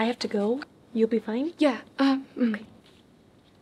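A young woman answers with surprise.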